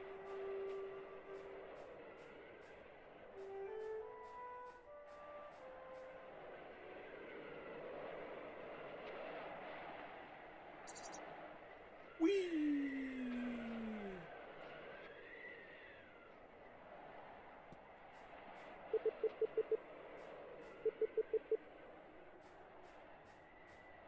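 Soft, airy game music plays throughout.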